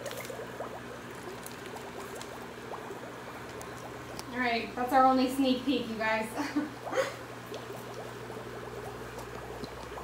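Water sloshes gently in a plastic tub.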